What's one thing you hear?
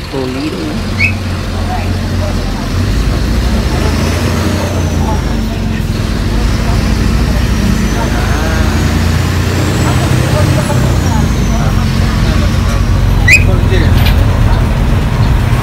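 A bus engine rumbles steadily.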